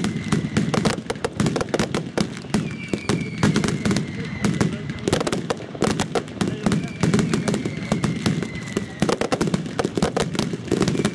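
Fireworks crackle and pop rapidly overhead.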